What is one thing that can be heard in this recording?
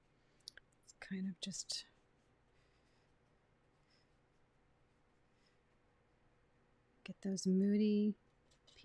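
A woman speaks calmly and close to a microphone.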